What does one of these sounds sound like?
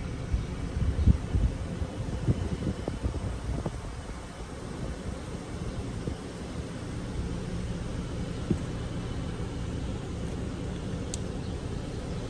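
Footsteps scuff on a pavement.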